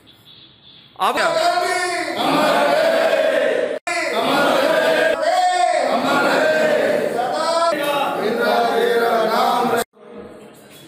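A group of men chant slogans loudly in unison.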